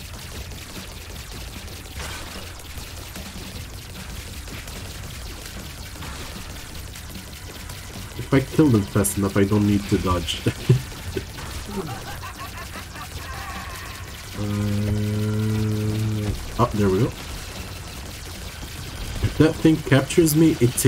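Small wet shots pop and splatter as creatures are hit in a game.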